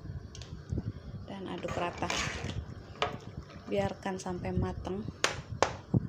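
A metal spoon stirs and scrapes inside a pot.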